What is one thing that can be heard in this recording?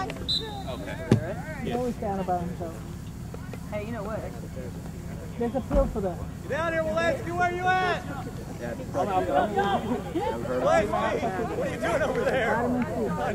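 Young players and onlookers shout and call out across an open field.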